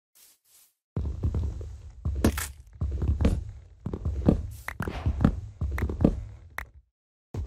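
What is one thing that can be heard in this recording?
An axe chops rhythmically into wood.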